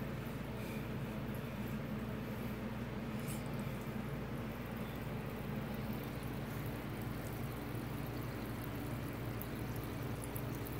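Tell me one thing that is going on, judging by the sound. Water bubbles and burbles steadily from an aquarium pump.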